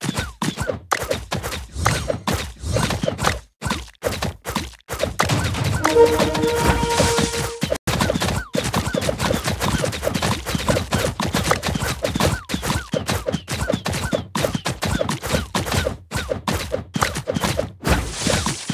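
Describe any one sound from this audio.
Game towers fire in quick, popping shots.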